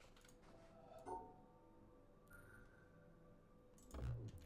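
A soft electronic tone hums steadily.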